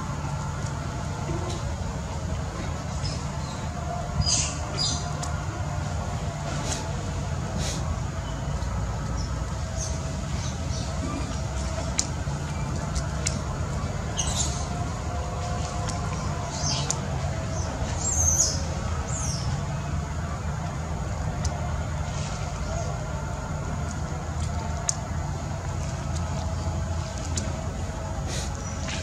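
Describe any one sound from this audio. A baby monkey suckles softly at close range.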